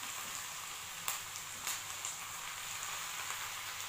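A hand places shrimp into a pan.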